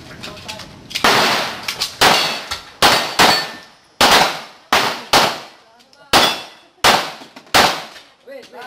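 Pistol shots ring out in quick succession, echoing off walls.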